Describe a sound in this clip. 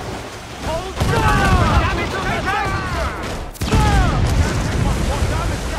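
Cannons fire with heavy booms.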